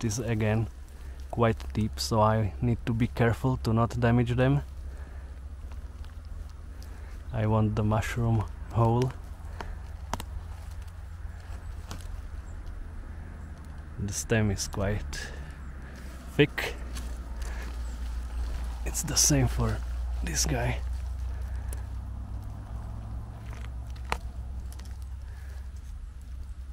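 Dry leaves and forest litter rustle as a hand pulls a mushroom from the ground.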